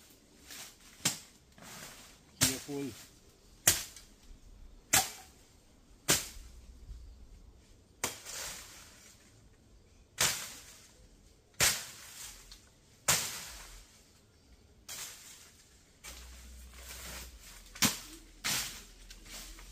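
A machete hacks sharply through brush in steady strokes.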